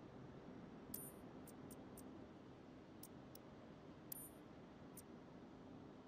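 Game menu clicks sound as selections change.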